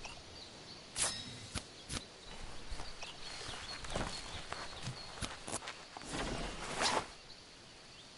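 Short clicks and soft thuds sound.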